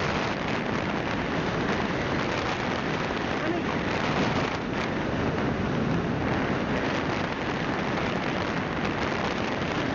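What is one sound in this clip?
Tyres rumble on asphalt.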